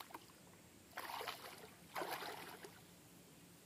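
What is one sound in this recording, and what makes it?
A baited fishing line splashes into shallow water.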